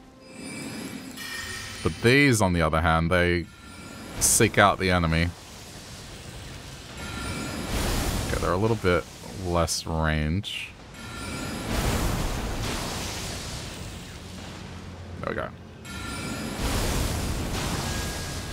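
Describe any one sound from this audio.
Magic spells whoosh and shimmer in bursts.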